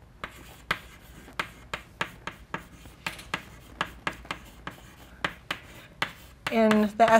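Chalk taps and scrapes on a blackboard in quick strokes.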